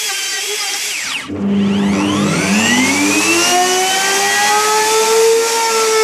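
An electric router spins down and starts up again with a rising whine.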